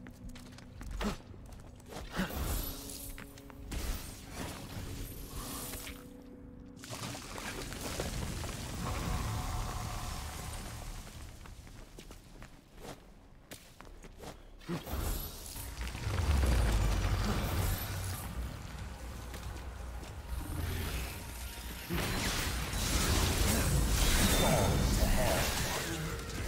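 Blades slash and clang in quick strikes.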